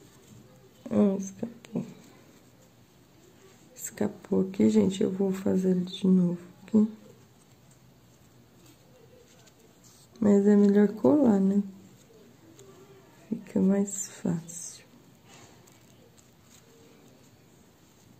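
A ribbon rustles softly as fingers thread it through lace.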